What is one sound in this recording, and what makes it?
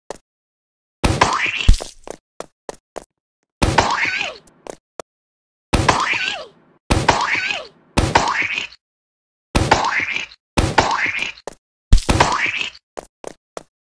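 A paint gun fires again and again, each shot ending in a wet splat.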